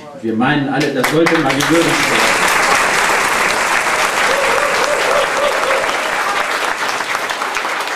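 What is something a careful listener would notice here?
An audience claps and cheers loudly in a room.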